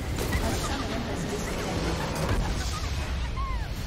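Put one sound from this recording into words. A game structure explodes with loud crashing blasts.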